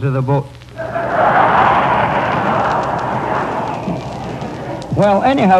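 A man speaks in a lively, sing-song voice.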